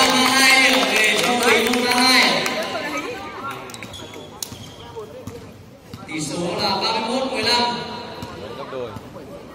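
Children shout and cheer excitedly in a large echoing hall.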